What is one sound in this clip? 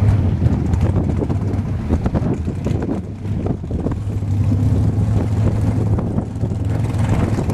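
A dragster engine idles with a loud, rough, lumpy rumble close by.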